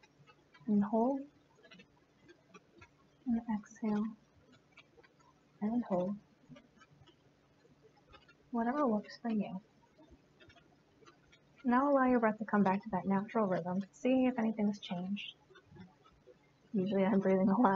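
A young woman speaks calmly and slowly in short phrases, close by.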